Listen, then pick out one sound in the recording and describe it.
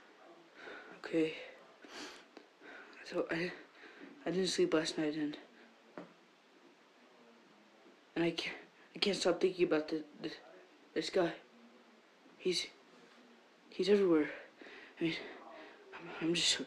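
A teenage boy talks close to a microphone, animated and in bursts.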